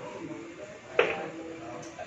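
A cue strikes a billiard ball with a sharp click.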